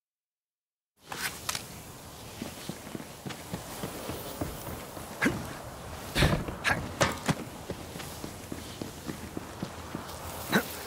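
Game footsteps crunch steadily on dirt and wooden boards.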